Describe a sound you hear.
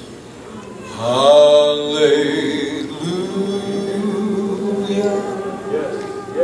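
A woman sings loudly and with feeling.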